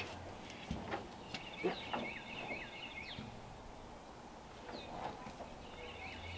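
Tools clink and knock against metal.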